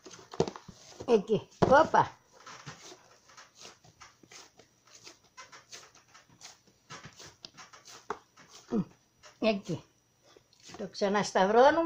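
Hands knead and press soft dough in a plastic bowl.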